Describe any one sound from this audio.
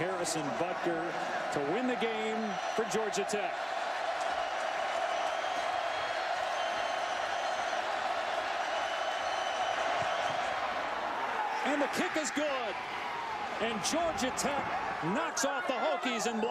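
A large stadium crowd roars loudly outdoors.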